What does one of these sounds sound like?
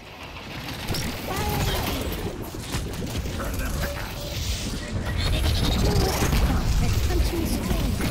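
Rapid gunfire crackles and thumps.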